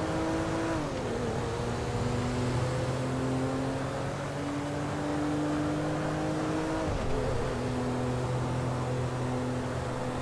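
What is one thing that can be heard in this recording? A car engine hums steadily as the car speeds along, dropping in pitch at gear changes.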